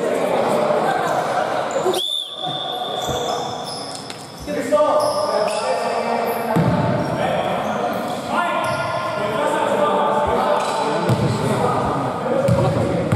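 Men call out and talk across the court.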